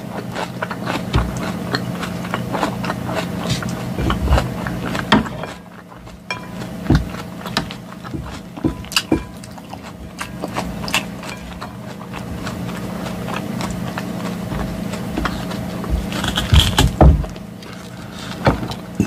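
A woman chews crunchy salad close to a microphone.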